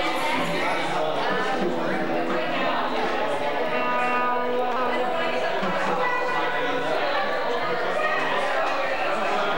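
A band plays with guitars and drums.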